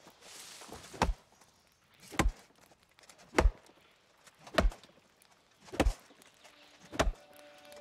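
An axe chops into wood with steady, repeated thuds.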